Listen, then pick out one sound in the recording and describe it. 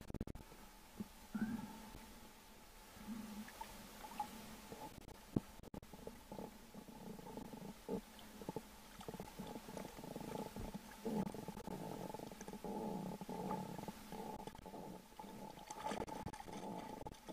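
Water laps and sloshes close by.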